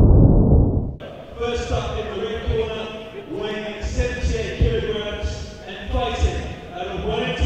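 A crowd murmurs and chatters in a large hall.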